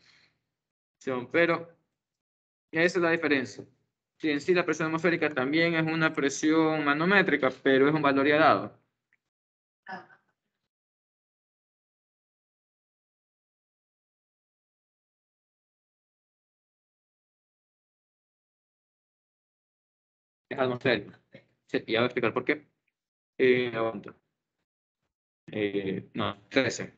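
A young man speaks calmly through a headset microphone on an online call, pausing now and then.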